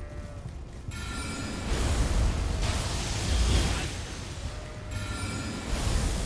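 Magic spells whoosh and crackle.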